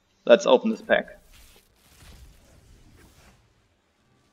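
A game pack bursts open with a sparkling whoosh.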